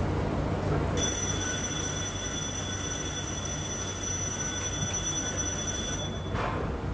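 A man speaks into a microphone, heard through a loudspeaker in an echoing space.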